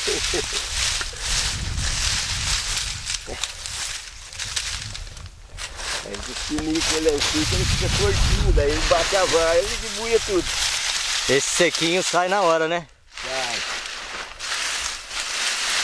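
Dry bean stalks rustle and crackle as they are handled.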